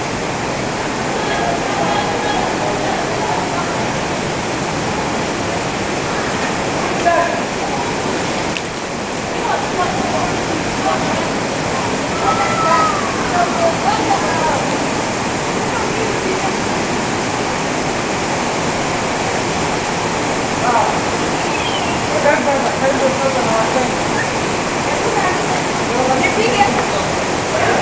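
Several adults talk with one another in an echoing space.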